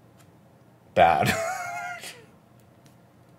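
A man laughs heartily over a microphone.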